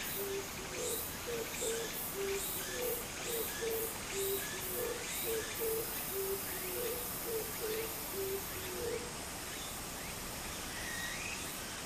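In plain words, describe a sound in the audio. Shallow water trickles and babbles steadily over the ground.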